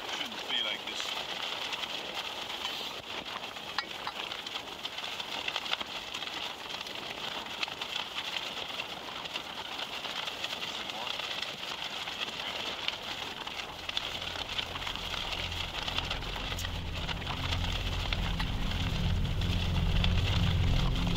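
A gas camping stove roars under a pot.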